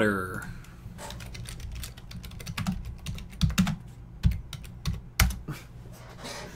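Fingers tap on a keyboard.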